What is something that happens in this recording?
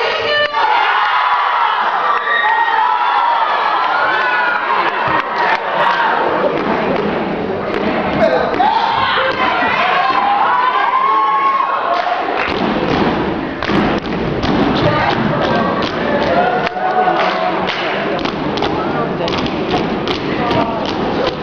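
A crowd of young people cheers and shouts loudly in a large hall.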